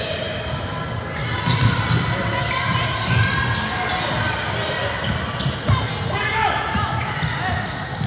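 Young players call out to each other across the gym.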